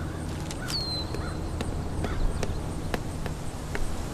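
Footsteps tap on a paved path.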